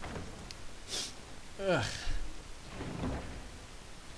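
A heavy wooden chest lid creaks open.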